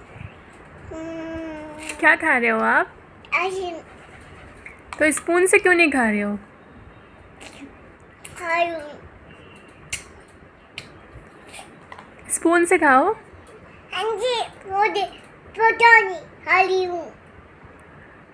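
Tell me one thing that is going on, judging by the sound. A young girl talks in a high, playful voice close by.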